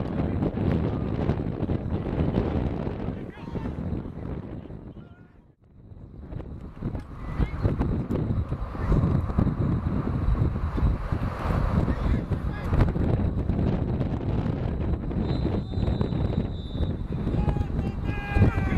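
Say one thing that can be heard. Players call out to one another across the field.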